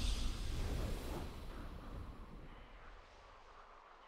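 A triumphant victory fanfare rings out and slowly fades.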